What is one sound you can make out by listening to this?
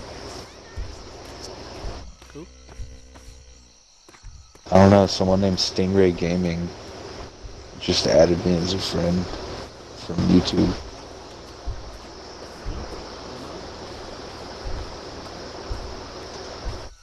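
Footsteps rustle through grass and leaves.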